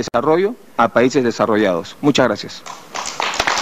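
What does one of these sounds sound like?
A man speaks firmly into a microphone in a large hall.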